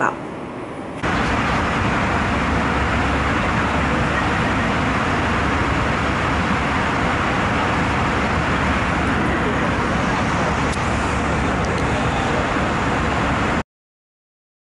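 An airplane cabin roars with a loud, steady engine rumble.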